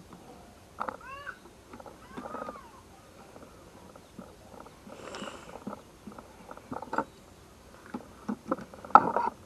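Small plastic and metal clips click and rattle as they are handled.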